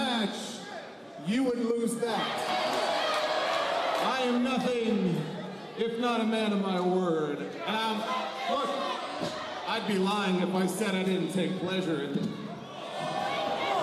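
A man speaks with animation into a microphone, heard over loudspeakers in a large echoing hall.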